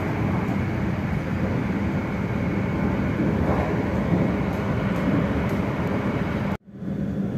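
A train rumbles and hums steadily as it rolls along the tracks.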